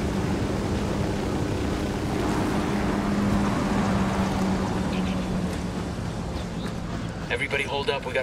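A helicopter hums and thuds overhead, then fades away.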